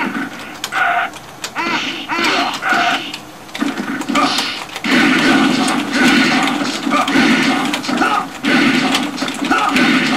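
Blows land with sharp thuds and smacks in a video game fight.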